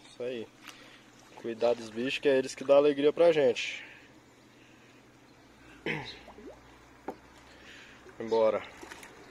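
Water splashes and sloshes as a net is dragged through it.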